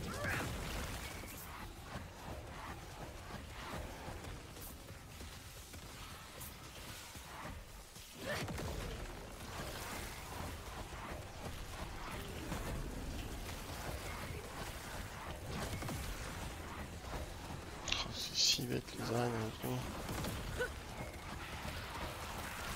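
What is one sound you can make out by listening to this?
Magic blasts and crackles from a video game battle.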